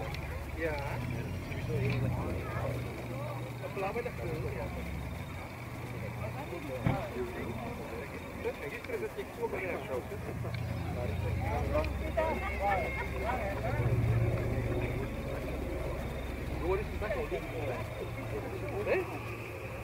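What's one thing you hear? A propeller airliner drones steadily overhead, its engines rumbling low.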